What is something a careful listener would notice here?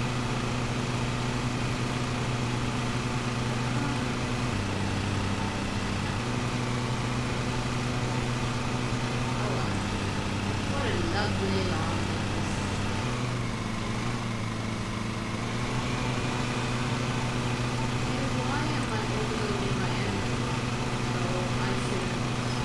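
A small engine hums steadily, with its pitch shifting now and then.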